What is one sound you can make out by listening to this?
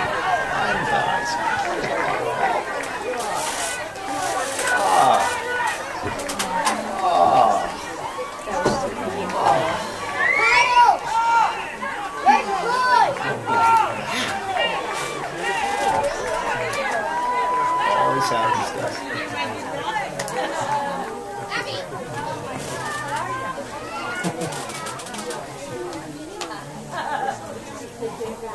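Young players shout and cheer outdoors in the distance.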